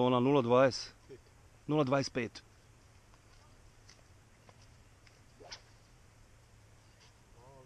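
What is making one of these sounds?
A man speaks loudly and with animation close by, outdoors.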